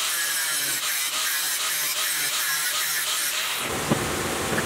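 An angle grinder whines as it cuts through metal.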